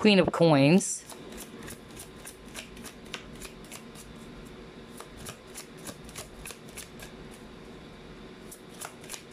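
Playing cards shuffle with quick, soft flicks and taps.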